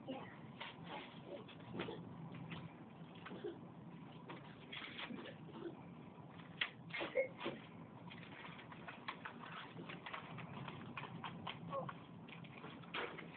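Paper rustles and crinkles in a child's hands.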